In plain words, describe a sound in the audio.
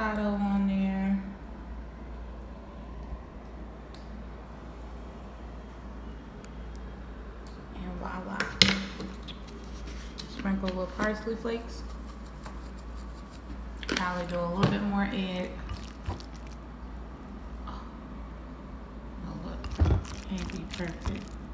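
A spatula scrapes and stirs food in a bowl.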